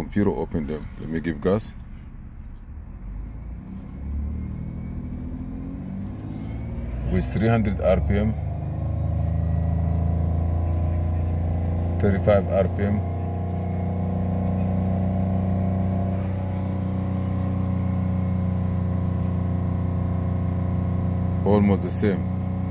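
A car engine idles, then revs up and holds a steady, higher drone.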